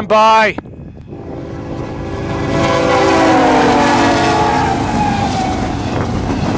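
A train horn blares loudly and drops in pitch as the locomotive passes.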